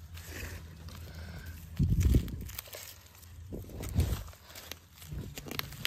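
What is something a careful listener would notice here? Dry leaves rustle and crunch as a hand brushes through them close by.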